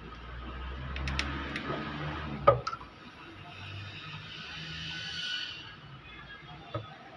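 Metal tools clink and scrape against an engine.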